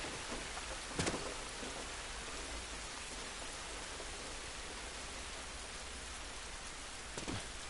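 Footsteps shuffle over wet ground.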